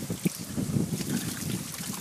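A thin stream of water pours from a pipe and splashes into a tank of water.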